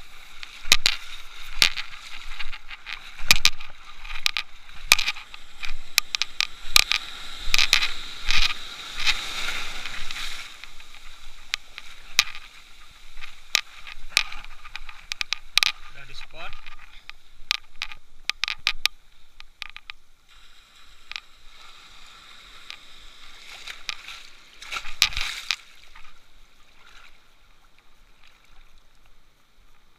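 Water splashes and sloshes close by, as in open sea.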